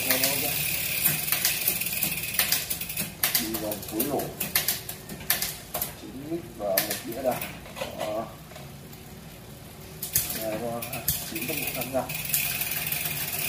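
A bicycle freewheel clicks and ticks close by.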